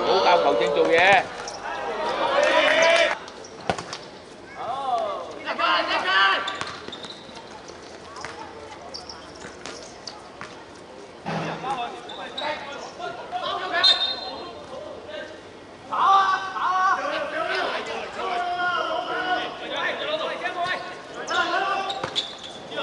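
Young men shout and call out to each other across an open court.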